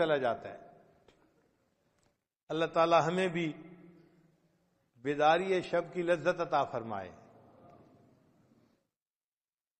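An elderly man reads aloud in short bursts, with a reverberant echo.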